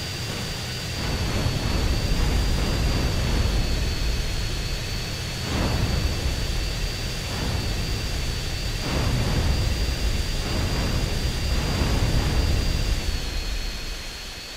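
Explosions boom in the air.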